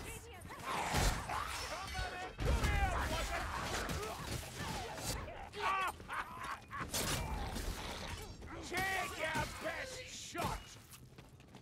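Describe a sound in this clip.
Heavy weapon blows thud and clang in a fight.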